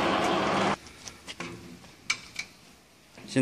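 Metal parts clink and knock as they are handled.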